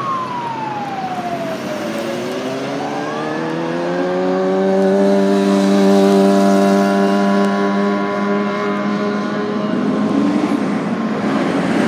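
Traffic rumbles along the road.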